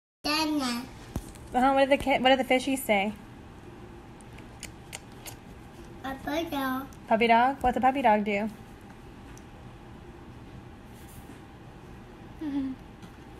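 A toddler babbles and chatters loudly, close by.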